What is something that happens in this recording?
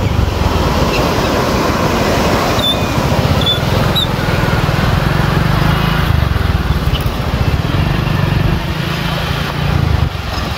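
Water rushes and churns loudly in a strong, steady flow, close by.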